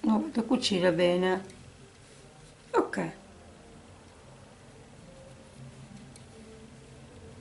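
Cloth rustles softly as hands smooth and fold it.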